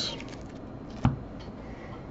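A card is set down on a hard surface with a light tap.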